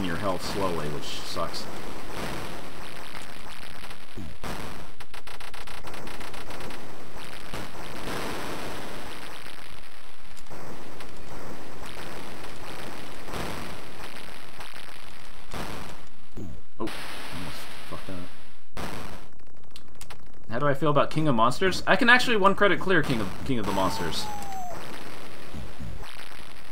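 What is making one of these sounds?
Retro arcade game sound effects crash and bleep throughout.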